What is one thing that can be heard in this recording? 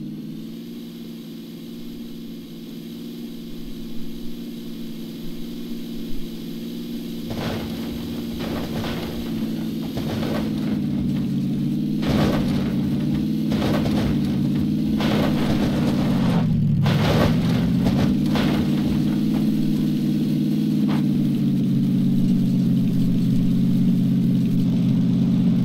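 A car engine hums steadily as the car drives over rough ground.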